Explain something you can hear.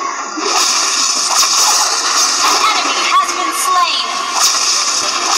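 Game spell effects whoosh and crackle in a fast-paced battle.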